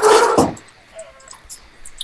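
A chicken squawks as it is hit.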